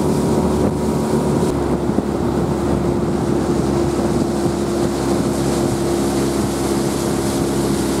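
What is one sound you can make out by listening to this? A small boat engine drones steadily.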